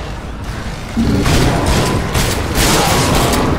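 Gunfire bursts out rapidly.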